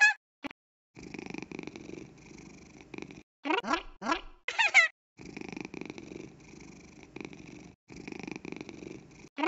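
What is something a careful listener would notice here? A cartoon cat purrs steadily.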